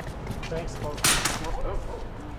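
A glass door bangs shut.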